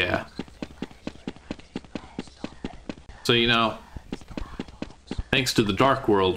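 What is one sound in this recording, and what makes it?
Footsteps tap on hard ground in an even walking rhythm.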